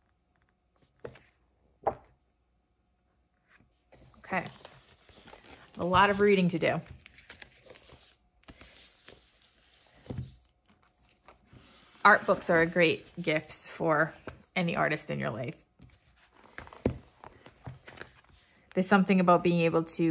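Pages of a book rustle and turn.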